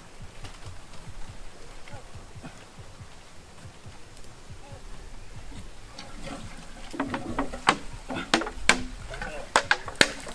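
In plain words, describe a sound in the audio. A hand pump thumps rhythmically as it is worked up and down.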